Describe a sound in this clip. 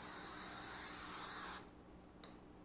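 An aerosol can sprays with a steady hiss.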